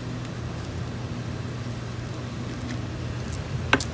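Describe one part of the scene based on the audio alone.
Soil rustles and crumbles as a scoop digs into it.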